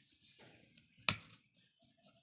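A straw pops through the foil top of a juice box.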